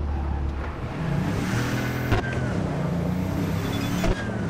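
Tyres screech on asphalt.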